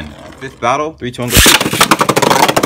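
A launcher's ripcord zips as a spinning top is launched.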